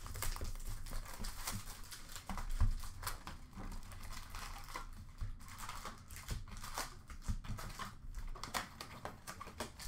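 Small card packs tap and clack against each other.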